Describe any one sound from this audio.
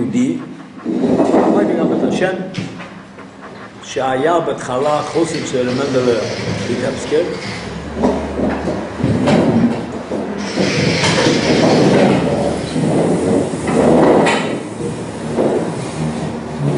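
An elderly man speaks calmly and with feeling, close by.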